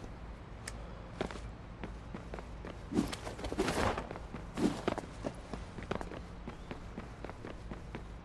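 Footsteps run quickly across a gravel roof.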